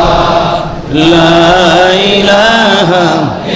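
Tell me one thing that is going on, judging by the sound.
A man chants in a long melodic voice into a microphone.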